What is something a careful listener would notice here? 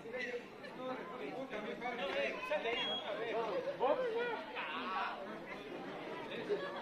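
Several men talk and call out nearby at once.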